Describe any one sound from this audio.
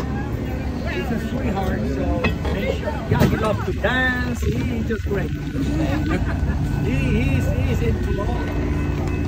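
Several adults talk nearby outdoors.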